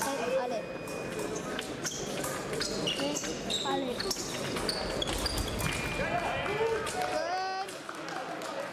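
Fencers' shoes squeak sharply on the floor.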